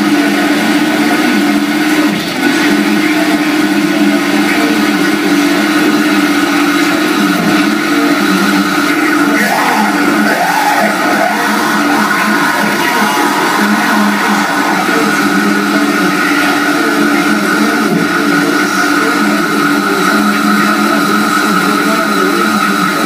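Loud electronic drones and buzzing tones play steadily through loudspeakers.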